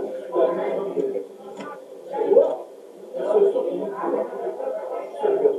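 A middle-aged man speaks with animation, heard through an online call.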